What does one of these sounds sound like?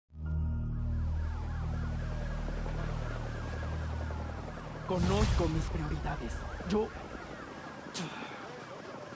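Sirens wail and rise and fall steadily.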